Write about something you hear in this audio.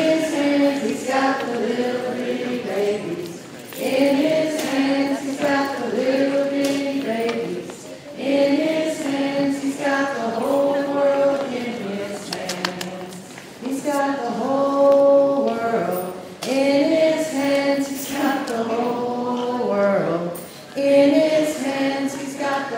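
A woman sings a slow song through a microphone in a large room.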